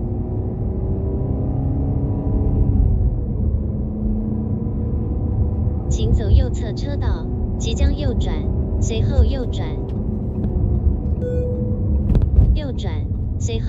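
A car engine hums steadily with a low rumble from inside the car.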